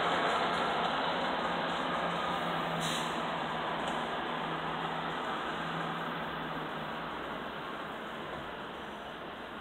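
A fire engine's motor rumbles steadily nearby.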